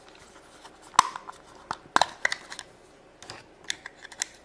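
A small plastic toy clicks and taps against plastic.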